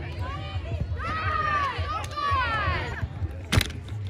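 Young women call out and cheer loudly.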